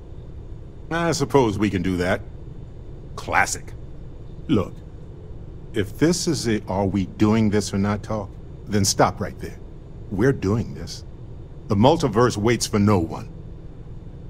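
A man speaks calmly and wryly, close by.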